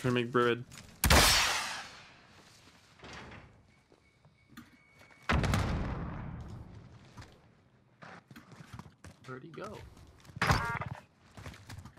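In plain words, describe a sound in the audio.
Gunshots and game sound effects crack loudly.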